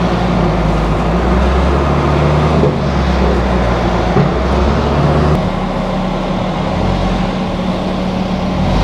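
A van engine idles with a steady, low rumble.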